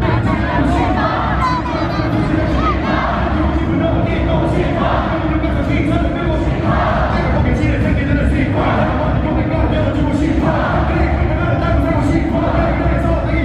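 A young man raps loudly into a microphone over a loudspeaker system.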